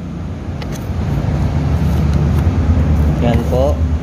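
Cardboard flaps rustle open.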